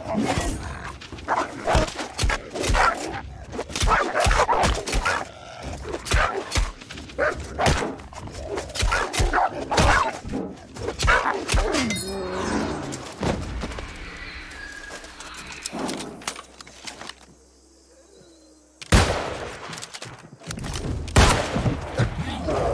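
A sword slashes and strikes repeatedly.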